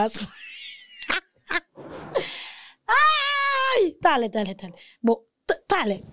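A woman laughs loudly into a close microphone.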